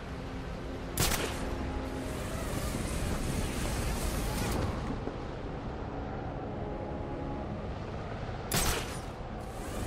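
A grappling line fires with a sharp whoosh.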